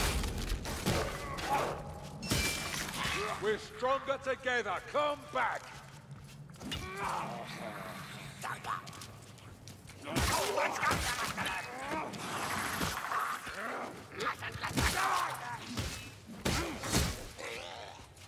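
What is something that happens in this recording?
A weapon strikes with heavy thuds and slashes.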